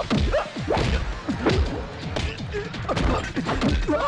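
A punch lands with a sharp slap.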